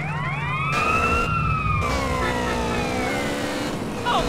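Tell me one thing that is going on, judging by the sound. A police siren wails nearby and fades away.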